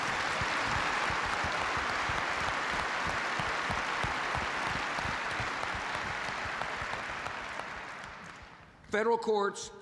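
A crowd applauds loudly in a large hall, then the applause fades.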